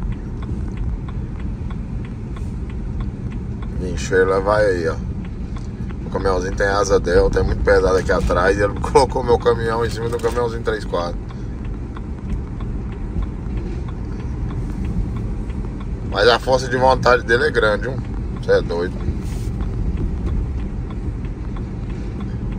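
Road noise rumbles steadily inside a moving car.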